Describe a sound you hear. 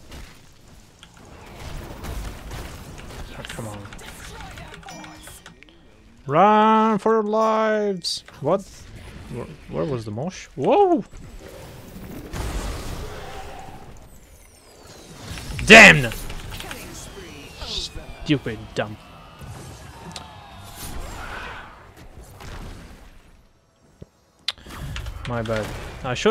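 Game spell effects and hits crackle and whoosh.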